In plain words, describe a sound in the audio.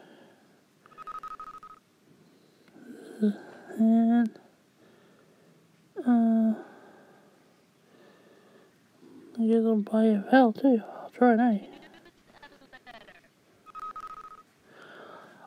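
An electronic game beeps briefly as a letter is chosen.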